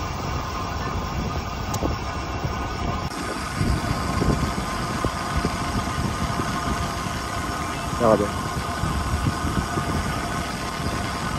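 Wind rushes and buffets loudly over a moving bicycle.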